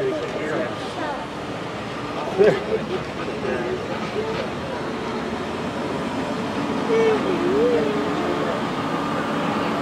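An outboard motor hums steadily on the water nearby.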